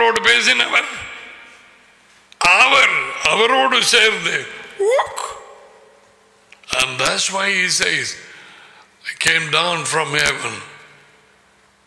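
An older man speaks with animation into a close microphone, in a slightly echoing room.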